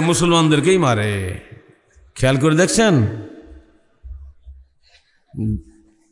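An elderly man speaks into a microphone in a slow, chanting voice, with a slight echo.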